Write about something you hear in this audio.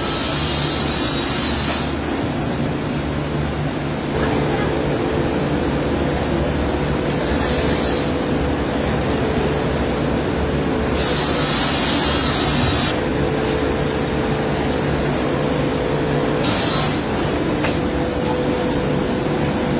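Machinery hums and rumbles steadily throughout.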